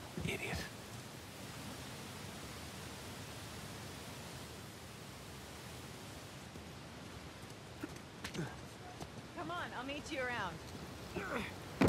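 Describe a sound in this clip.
Footsteps tread on leafy ground.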